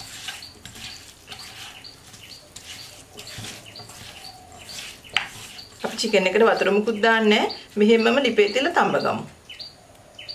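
Hands squish and stir raw meat in a pot.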